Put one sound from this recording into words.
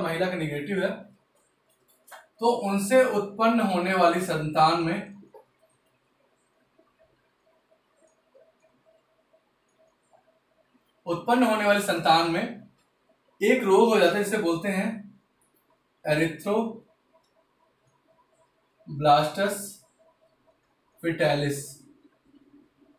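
A man speaks calmly, close by, pausing between phrases.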